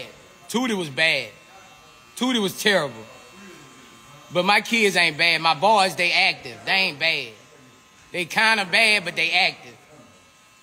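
A man talks with animation close to a phone microphone.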